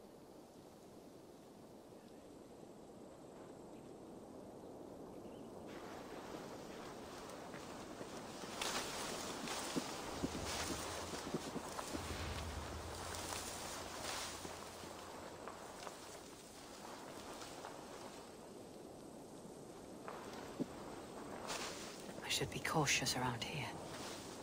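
Leaves and brush rustle as someone creeps through dense undergrowth.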